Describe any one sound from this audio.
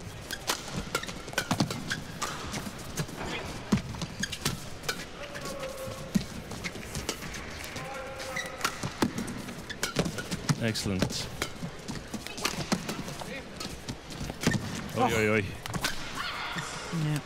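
A shuttlecock is struck sharply by rackets, back and forth.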